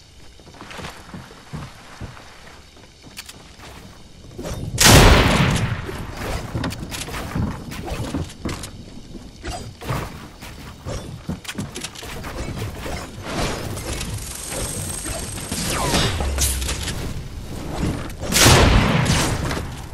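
Wooden walls clatter as they are built in a video game.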